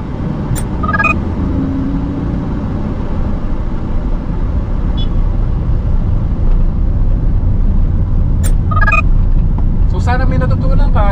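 A car engine hums steadily and slowly builds as the car speeds up.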